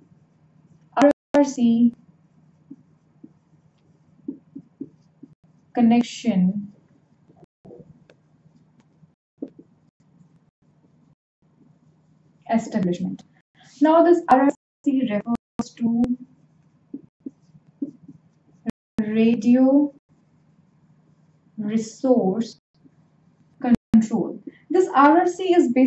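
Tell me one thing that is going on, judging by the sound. A young woman speaks calmly and clearly into a nearby microphone, in short bursts with pauses.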